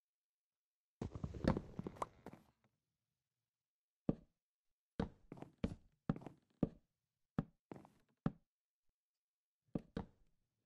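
Wooden blocks knock sharply as they are chopped and set down.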